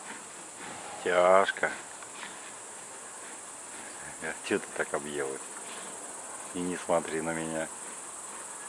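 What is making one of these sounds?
A bear gives short, moaning growls.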